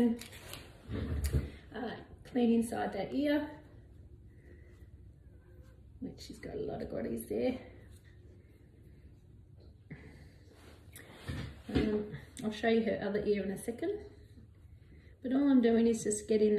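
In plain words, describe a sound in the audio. An older woman talks softly and warmly, close by.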